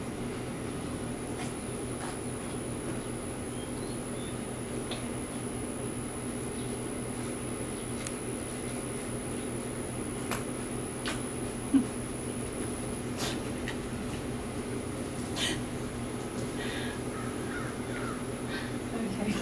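A woman rustles and handles food close by.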